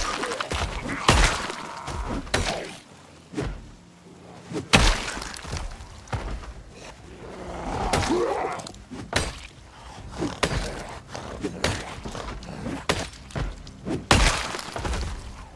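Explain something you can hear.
A weapon strikes a body with repeated heavy thuds.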